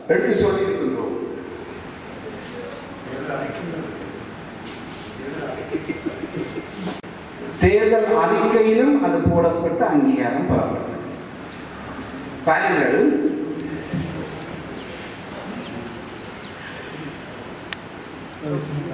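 A middle-aged man speaks forcefully through a microphone and loudspeakers, in a large echoing hall.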